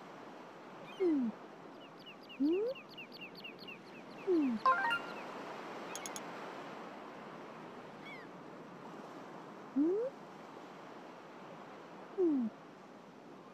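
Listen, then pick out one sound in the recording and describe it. Short whooshing tones sweep up and down now and then.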